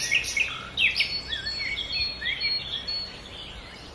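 Small stones clink as they drop into a metal tub.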